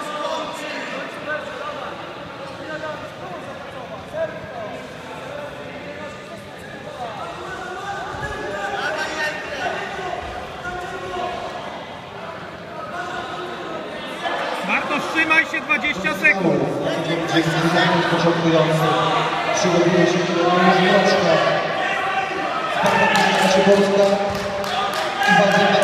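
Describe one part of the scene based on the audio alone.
Men talk and call out across a large echoing hall.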